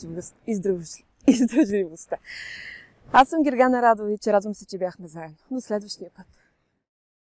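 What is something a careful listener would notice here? A woman speaks with animation close to a clip-on microphone.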